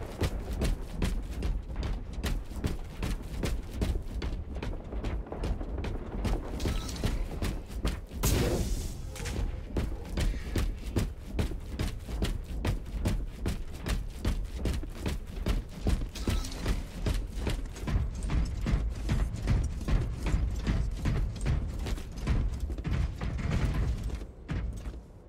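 Heavy armored footsteps thud steadily on stone.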